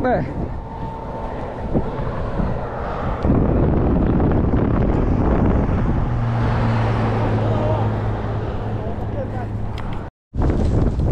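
Cars rush past on a nearby highway.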